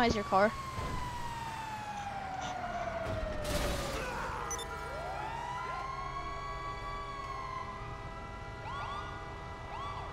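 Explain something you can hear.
A fire truck engine rumbles steadily as the truck drives along.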